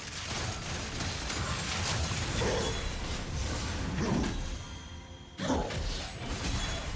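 Magic spells crackle and burst in a fast fight between game characters.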